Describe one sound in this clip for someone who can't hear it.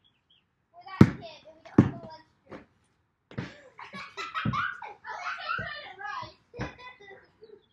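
A basketball bounces hard on pavement.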